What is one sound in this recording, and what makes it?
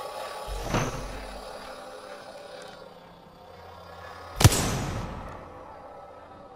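A gunshot booms and echoes.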